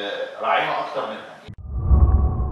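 A man speaks calmly, heard at a distance.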